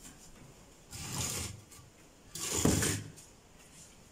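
A wooden window frame is pushed open.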